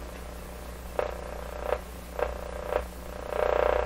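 A hand taps on a wooden pole a few times.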